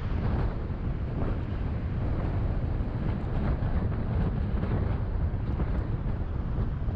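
Car engines hum and tyres roll steadily on a busy road nearby.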